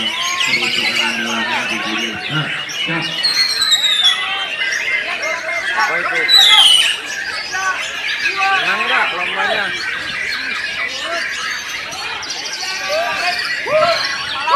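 A caged songbird sings loud, varied whistling phrases.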